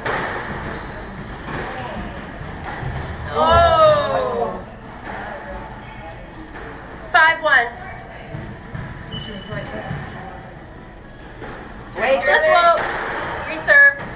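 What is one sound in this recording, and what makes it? A squash ball smacks against the walls.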